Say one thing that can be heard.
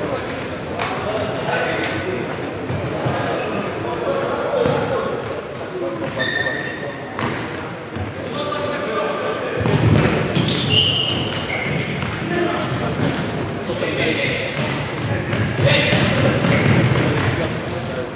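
Men shout to each other during play, echoing in a large hall.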